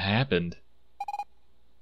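A short soft blip sounds as a dialogue box opens.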